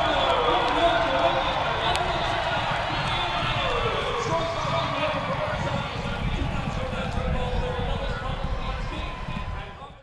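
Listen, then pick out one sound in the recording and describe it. Horse hooves pound on turf at a gallop.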